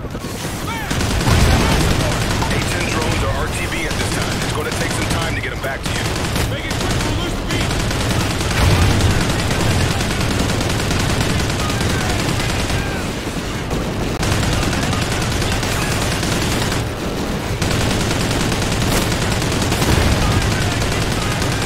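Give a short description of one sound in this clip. A mounted heavy machine gun fires in long bursts.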